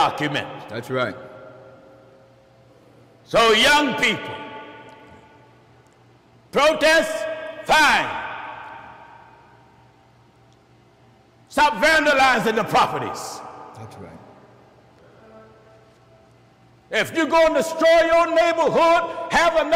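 A man preaches forcefully into a microphone in a reverberant hall, in bursts with long pauses.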